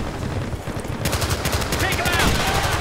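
A machine gun fires in rapid bursts close by.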